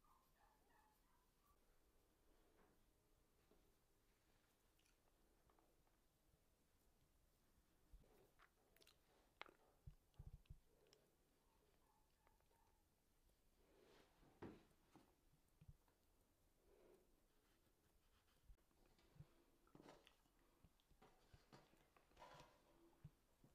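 Soft dough is pinched and pressed by hand, with small taps and clicks up close.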